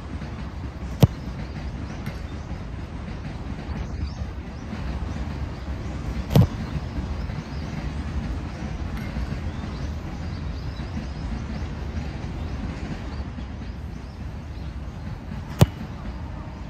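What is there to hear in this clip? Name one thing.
A football is kicked hard with a sharp thump.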